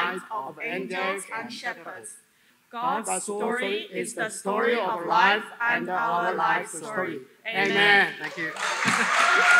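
A small group of men and women sing together through a microphone.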